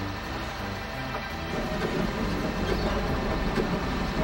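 A fire engine's motor rumbles as it drives.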